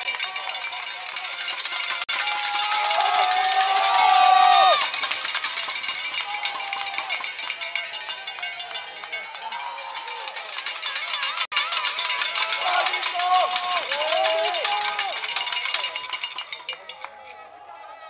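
Mountain bike tyres skid and spray dirt and gravel down a slope.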